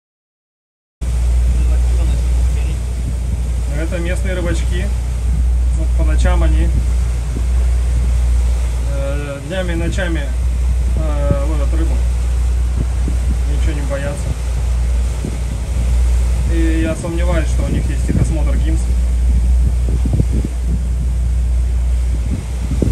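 Wind rumbles loudly outdoors over open water.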